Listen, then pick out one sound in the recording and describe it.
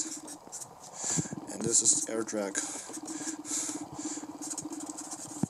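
A marker squeaks and scratches across a whiteboard in short strokes.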